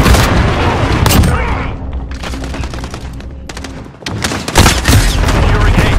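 Shotgun blasts boom loudly and sharply.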